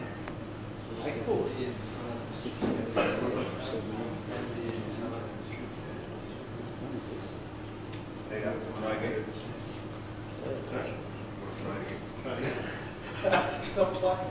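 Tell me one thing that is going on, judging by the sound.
Men talk quietly at a distance in a large echoing hall.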